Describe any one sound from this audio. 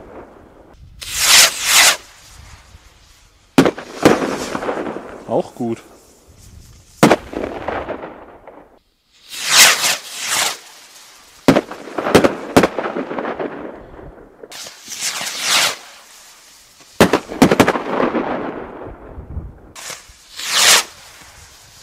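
Fireworks launch with sharp whooshing hisses.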